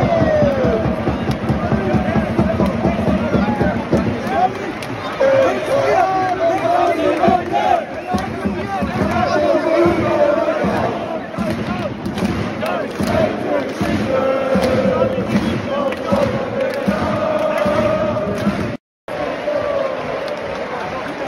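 Men in the crowd shout excitedly up close.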